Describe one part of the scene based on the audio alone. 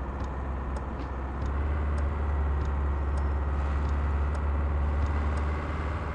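Tyres roll on the road surface.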